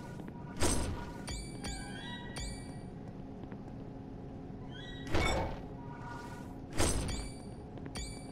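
Heavy blows land in sudden, loud whooshing bursts.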